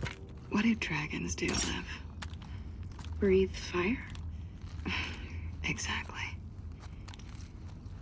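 Metal parts of a gun click and rattle as it is handled.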